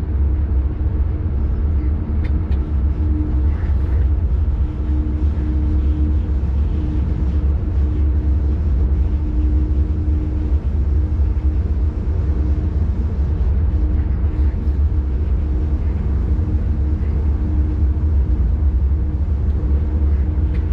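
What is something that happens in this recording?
A train rumbles steadily along the rails with a deep, constant drone.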